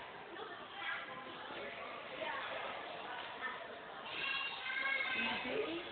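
Young girls talk and chatter in an echoing hall.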